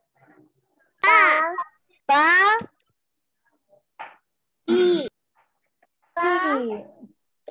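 A young child calls out syllables loudly over an online call.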